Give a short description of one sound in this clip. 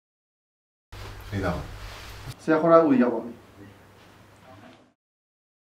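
A young man speaks briefly and close up.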